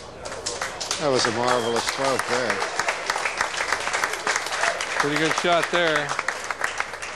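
A man in the crowd shouts with excitement.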